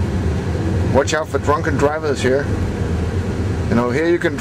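A man talks nearby inside the car.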